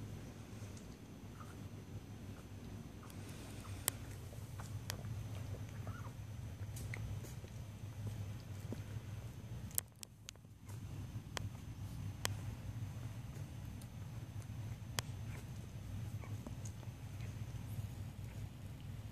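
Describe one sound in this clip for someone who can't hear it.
Puppies suckle with soft smacking sounds.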